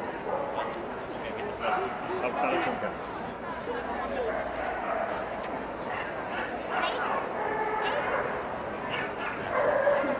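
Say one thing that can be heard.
A crowd chatters throughout a large echoing hall.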